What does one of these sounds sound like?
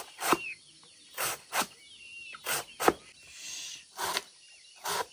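A knife chops through a banana stem onto a wooden block.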